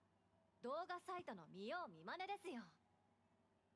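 A young woman speaks calmly and lightly, close by.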